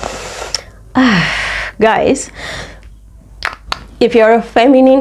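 A young woman talks and laughs cheerfully, close to a microphone.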